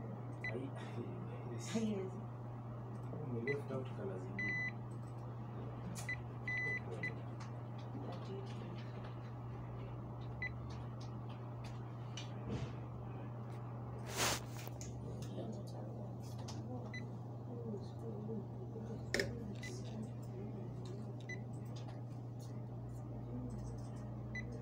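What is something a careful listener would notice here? Buttons on a handheld device click as they are pressed.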